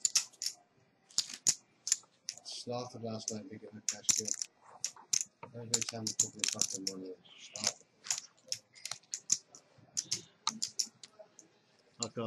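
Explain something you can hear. Poker chips click and clatter against each other.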